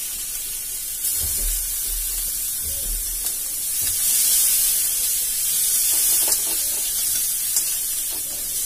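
A spatula scrapes and clinks against a pan and plate.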